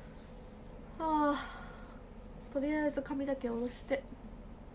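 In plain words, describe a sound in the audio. A young woman speaks close by, casually.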